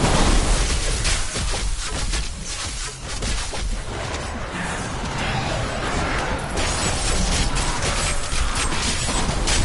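Spell blasts and hits crash and whoosh in a fierce fight.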